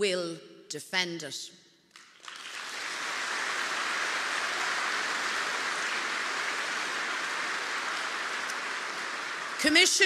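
A middle-aged woman speaks firmly through a microphone in a large hall.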